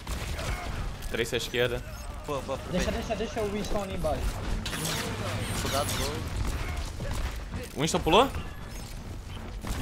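Gunshots crack from a game in quick bursts.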